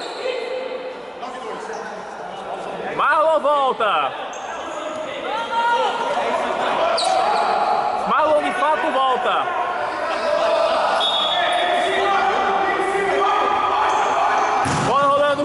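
A ball is kicked with dull thumps.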